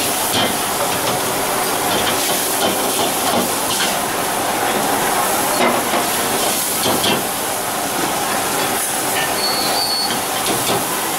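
A stove burner roars steadily.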